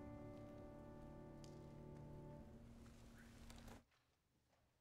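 A choir sings a long, held final chord in an echoing hall.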